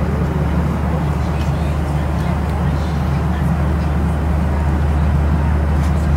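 A laminated card rustles and scrapes as it is pulled from a seat pocket.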